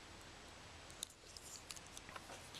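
Fingers tap and click small plastic objects.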